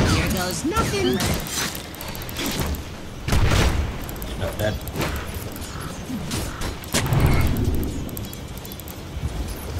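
Sharp magical impacts and whooshes strike repeatedly in a fight.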